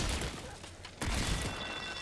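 A gun fires.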